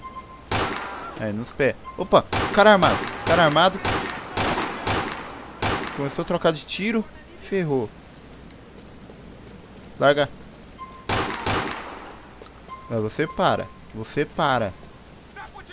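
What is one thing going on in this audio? A handgun fires repeated loud shots.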